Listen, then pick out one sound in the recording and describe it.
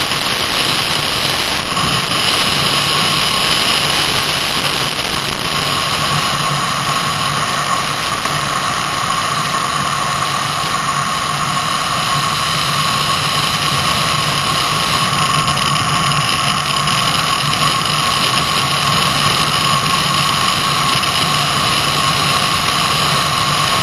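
A small engine buzzes steadily at high revs close by.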